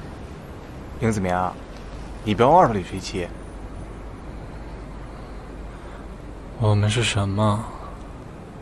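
A young man speaks softly nearby, in short phrases.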